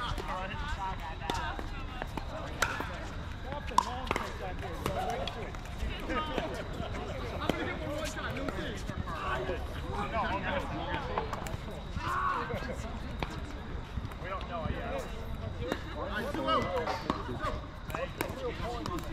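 Several adult men and women chatter and call out at a distance outdoors.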